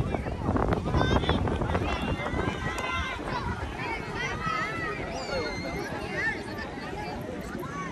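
A crowd of people chatters and shouts in the distance.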